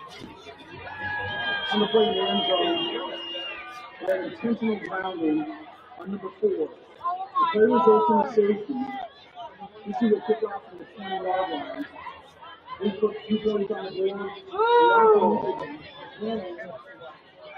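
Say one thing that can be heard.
A crowd of spectators shouts and cheers outdoors.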